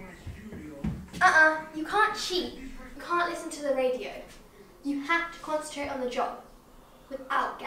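A young girl speaks with animation nearby.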